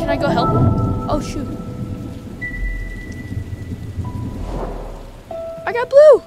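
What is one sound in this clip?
A boy talks into a headset microphone, close and casual.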